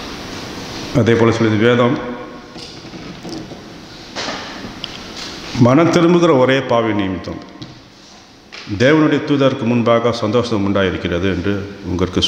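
A middle-aged man speaks calmly into a microphone, heard through a loudspeaker in an echoing hall.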